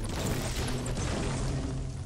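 An explosion roars with crackling fire.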